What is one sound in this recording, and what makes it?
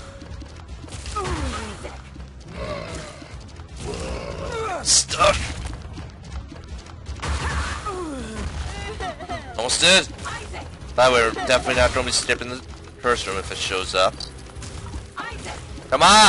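Game monsters squeal and gurgle.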